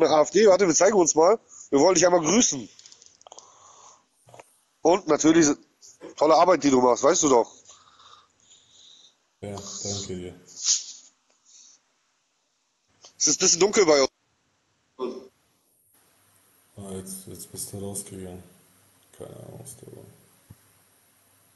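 A man talks calmly and close into a phone microphone, with pauses.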